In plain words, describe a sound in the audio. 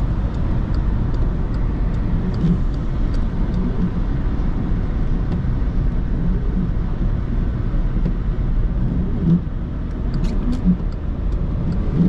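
Windscreen wipers sweep across the glass.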